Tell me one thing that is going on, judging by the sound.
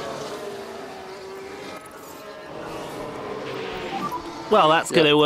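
Racing car engines drone and whine as the cars pass.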